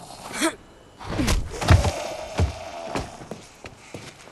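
A heavy blade strikes flesh with wet thuds.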